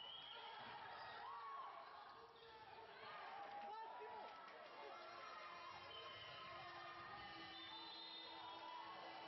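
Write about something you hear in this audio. Basketball shoes squeak sharply on a hard floor in a large echoing hall.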